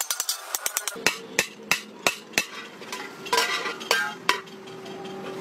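A hammer strikes metal with loud ringing blows.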